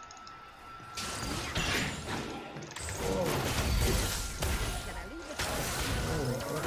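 Spell blasts and clashing effects burst from a game's fight.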